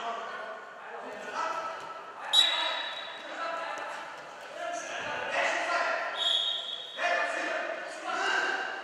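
Many young people chatter and call out in a large echoing hall.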